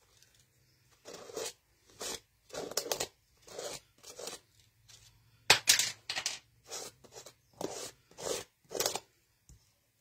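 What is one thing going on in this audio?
A palette knife scrapes repeatedly across a plastic stencil.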